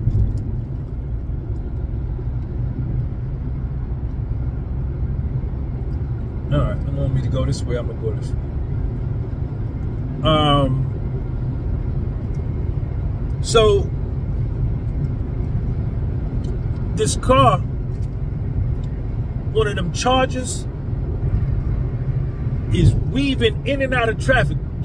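A car engine and road noise rumble steadily from inside the car.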